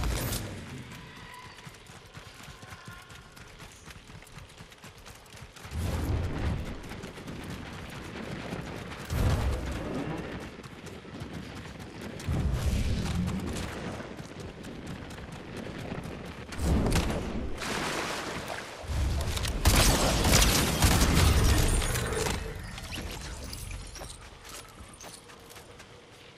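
Footsteps thud over soft ground.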